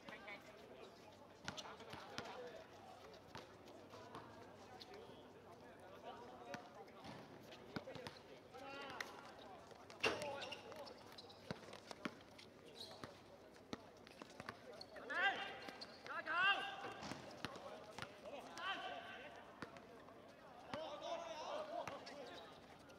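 A football is kicked on a hard court with sharp thuds.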